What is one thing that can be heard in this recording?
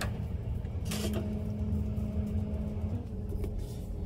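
A toaster oven hums steadily.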